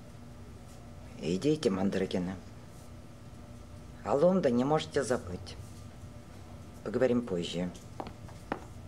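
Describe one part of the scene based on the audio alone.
An older woman speaks calmly, close by.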